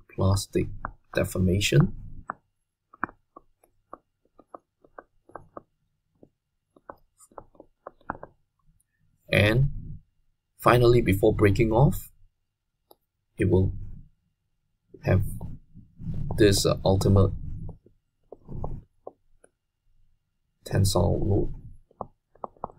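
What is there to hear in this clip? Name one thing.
A man speaks calmly and explains into a close microphone, in bursts with pauses.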